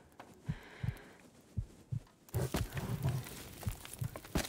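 A wood fire crackles in a stove.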